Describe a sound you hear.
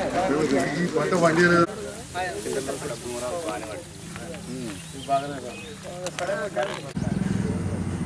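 Several men talk among themselves nearby outdoors.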